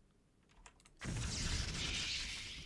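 A magical shimmering rush swells loudly.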